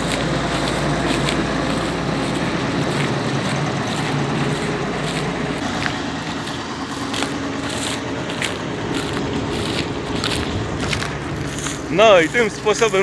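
A combine harvester's engine rumbles loudly close by.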